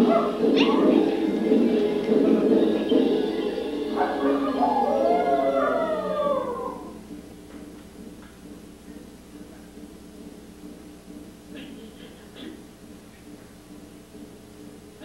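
Dancers shuffle and thud softly across a wooden stage floor.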